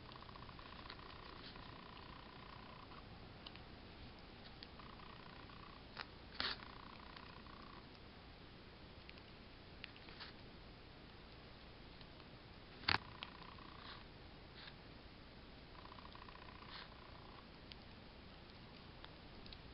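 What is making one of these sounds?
A metal hook clicks and taps lightly against small pins.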